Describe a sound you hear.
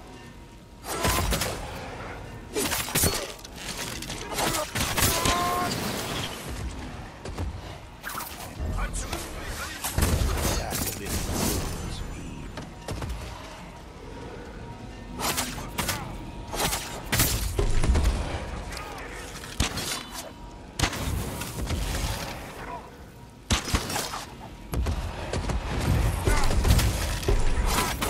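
Swords clash and slash in quick, repeated strikes.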